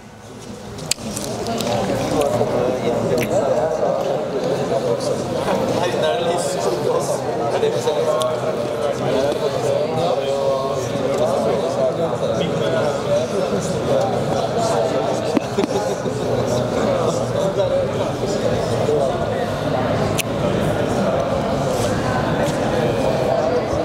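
A man talks calmly through a microphone, echoing in a large hall.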